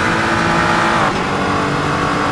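A racing car's gearbox shifts up with a brief dip in the engine note.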